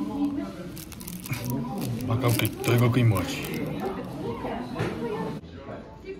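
Plastic wrapping crinkles in a hand.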